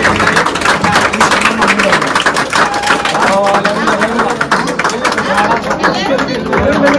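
A crowd claps rhythmically close by.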